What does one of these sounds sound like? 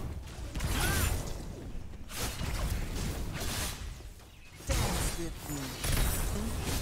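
Weapons clash and strike in a busy fight.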